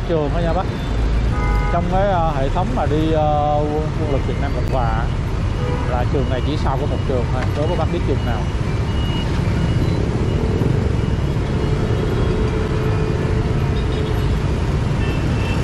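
A motorbike engine idles nearby.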